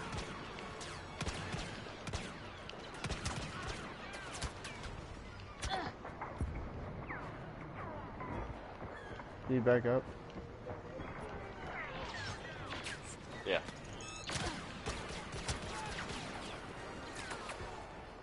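Laser blasts zap and explode nearby.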